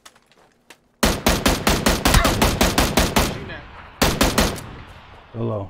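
A rifle fires rapid bursts of loud shots that echo away.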